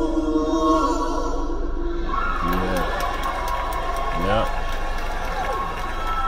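A woman sings a slow, sustained melody with sliding notes.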